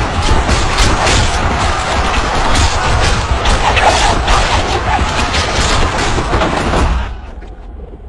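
A large crowd of men shouts and clashes in battle.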